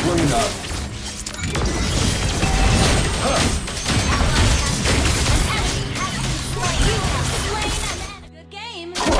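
Game spell effects zap and clash in rapid bursts.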